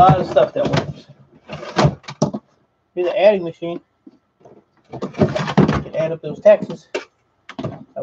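A plastic device knocks and clatters as it is set down.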